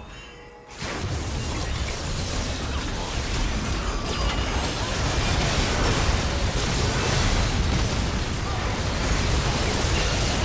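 Magic blasts and weapon strikes of a fantasy battle ring out.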